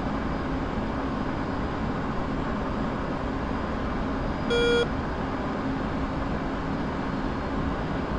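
A jet engine roars steadily inside a cockpit.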